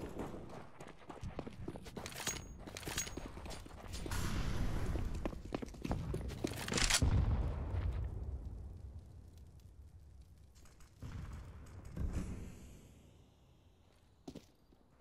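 Quick footsteps thud on hard stone.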